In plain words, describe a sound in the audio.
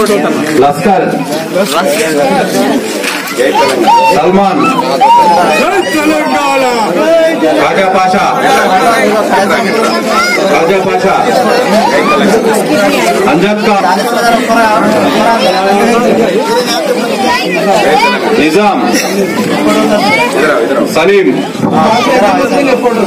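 A crowd of men talks and cheers loudly all around, close by.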